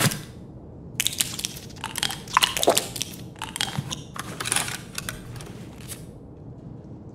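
Gear rustles and clicks as items are moved around.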